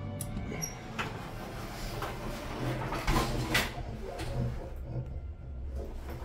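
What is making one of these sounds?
An elevator motor hums low and steady.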